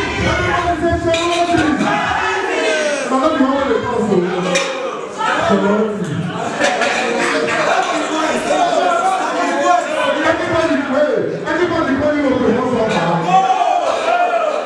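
A young man raps energetically into a microphone over loudspeakers.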